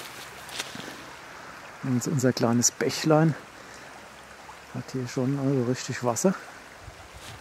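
A shallow stream flows quietly outdoors.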